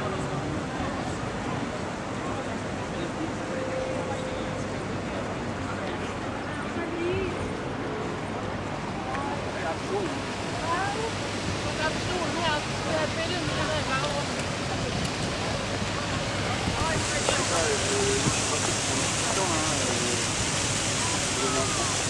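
City traffic hums steadily in the distance outdoors.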